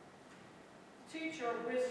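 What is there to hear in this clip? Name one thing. An elderly woman begins speaking into a microphone.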